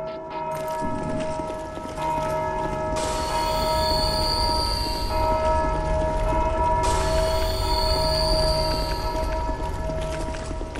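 Armored footsteps clank across a stone floor.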